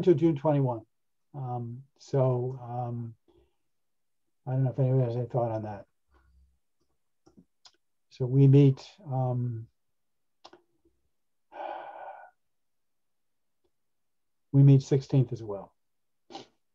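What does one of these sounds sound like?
An older man speaks calmly over an online call, in short phrases with pauses.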